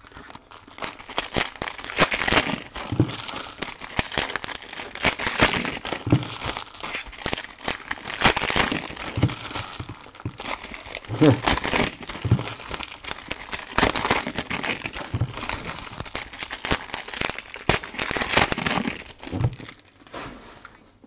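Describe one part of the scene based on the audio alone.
A plastic wrapper crinkles and rustles as it is shaken vigorously.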